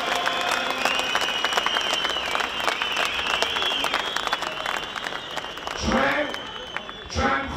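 A young man speaks forcefully into a microphone over a loudspeaker.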